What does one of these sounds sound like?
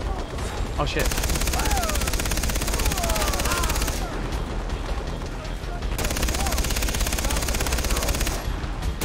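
A heavy machine gun fires rapid bursts.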